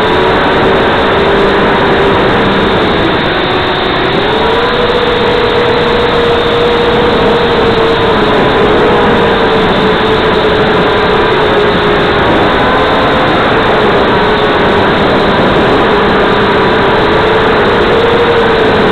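A small drone's motors whine steadily, the pitch drifting up and down as it flies.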